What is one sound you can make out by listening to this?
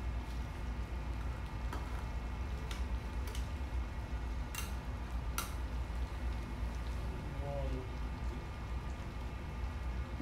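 A spatula scrapes and clinks against a metal pan.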